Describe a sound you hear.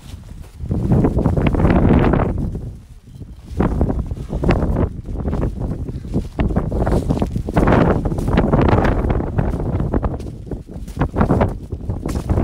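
Strong wind buffets the microphone.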